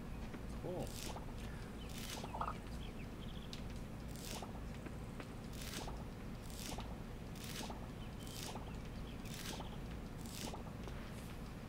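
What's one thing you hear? Short rustling pops sound as crops are pulled up, again and again.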